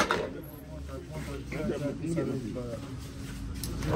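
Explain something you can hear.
A knife chops meat on a cutting board.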